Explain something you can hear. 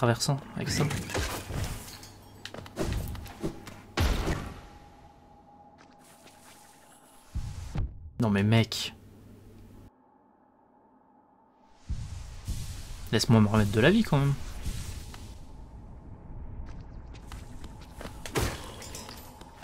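A blade slashes through the air with sharp swishes.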